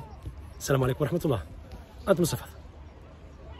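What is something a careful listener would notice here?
A middle-aged man speaks cheerfully and close up.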